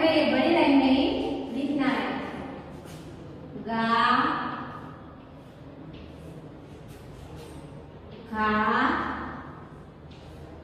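A woman speaks clearly and slowly, close by, in short phrases.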